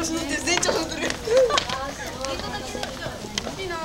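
Footsteps run up stone steps.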